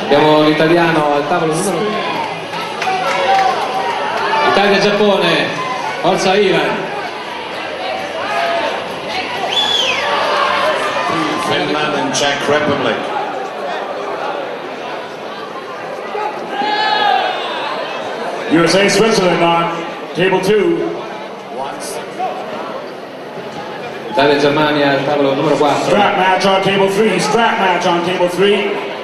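A man calls out commands loudly nearby.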